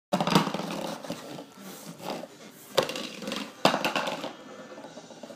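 A plastic cup clatters and rolls across a hard floor.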